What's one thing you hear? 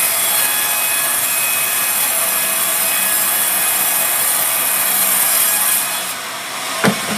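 A band saw cuts through wood with a loud, steady, high whine.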